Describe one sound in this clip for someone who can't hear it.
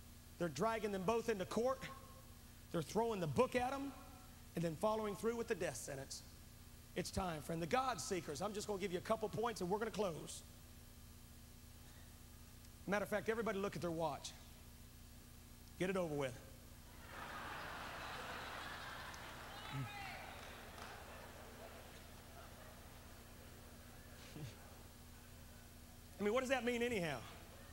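A middle-aged man speaks with emotion through a microphone in a large echoing hall.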